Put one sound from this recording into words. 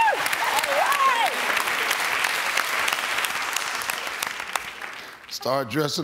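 A studio audience claps and cheers loudly.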